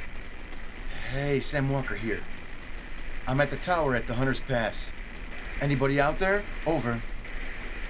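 A man speaks calmly into a radio handset.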